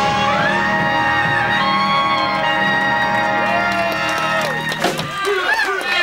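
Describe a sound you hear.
A jazz band plays horns, ending on a held chord.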